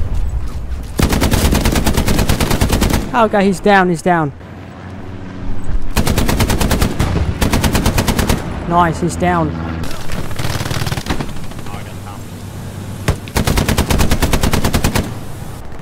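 A machine gun fires in rapid bursts close by.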